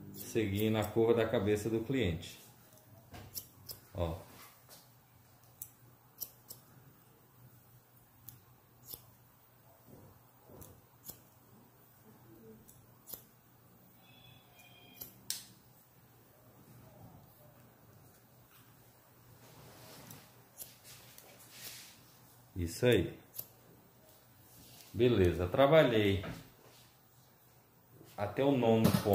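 Scissors snip hair close by, in short crisp clicks.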